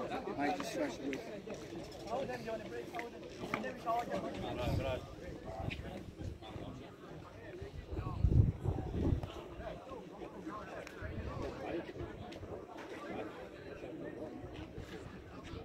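Young players call out and chatter across an open field outdoors.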